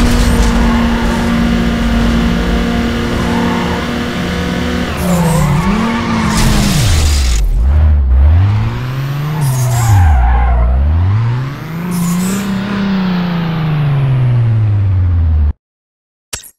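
A car engine roars at high revs, rising and falling as gears shift.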